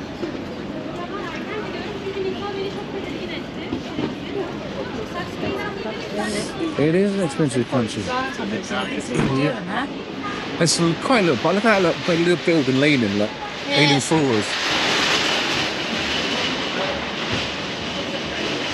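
Voices murmur faintly along a quiet street outdoors.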